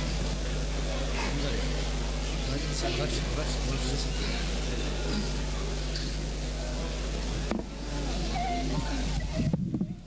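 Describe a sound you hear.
A young woman speaks softly into a microphone.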